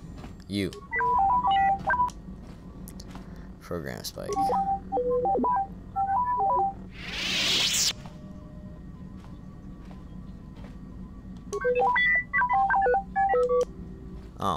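A small robot chirps out a quick series of electronic beeps and warbles.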